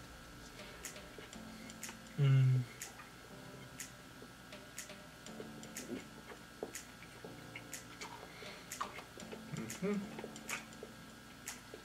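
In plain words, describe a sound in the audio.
A man chews food with soft, wet smacking sounds.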